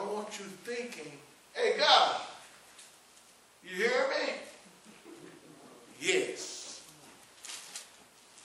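A man preaches into a microphone with animation, his voice rising in loud bursts.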